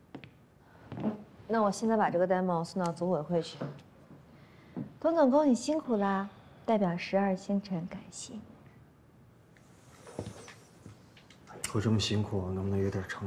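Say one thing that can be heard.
A young woman speaks warmly nearby.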